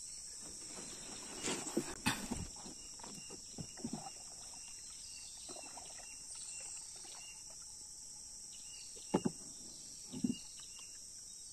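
Water drips and splashes as a net is hauled up out of the river.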